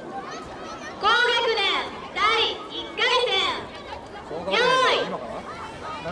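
A group of children shout together in loud rhythmic calls outdoors.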